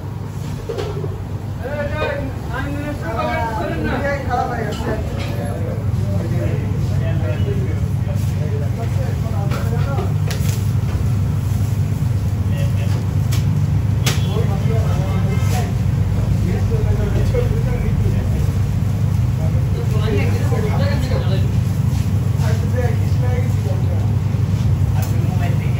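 An extractor fan hums steadily.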